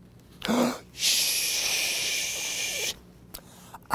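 A man makes a long shushing sound.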